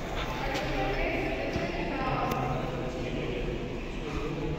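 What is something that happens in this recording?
Several adults murmur quietly in a large echoing hall.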